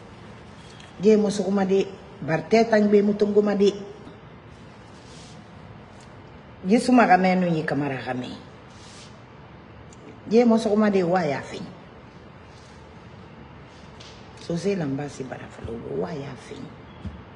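A middle-aged woman speaks close to a microphone with emotion, in short bursts with pauses.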